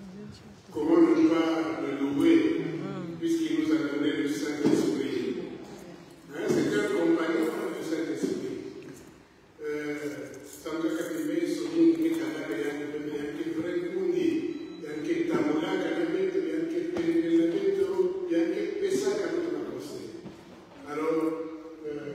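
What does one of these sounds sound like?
A man speaks steadily and with feeling in a large echoing hall.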